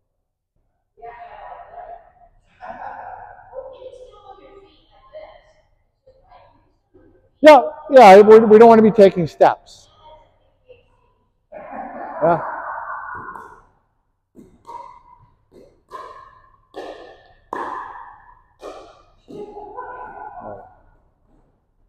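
Women talk and call out to each other in a large echoing hall.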